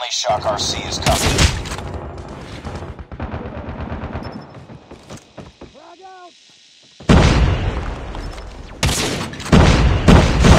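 A sniper rifle fires loud booming shots.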